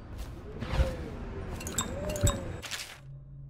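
Items clatter as they are picked up from a box.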